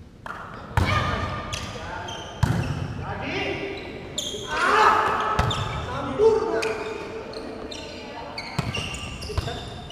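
Players call out to each other in a large echoing hall.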